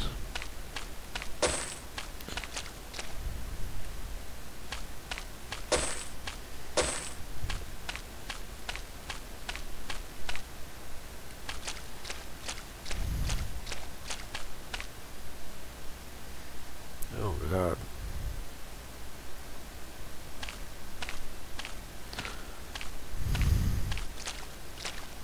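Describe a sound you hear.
Footsteps crunch steadily over grass and dirt.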